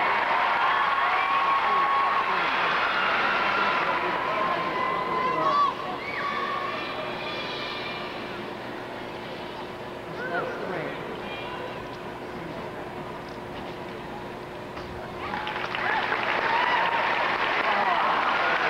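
A large crowd murmurs and chatters in a big echoing arena.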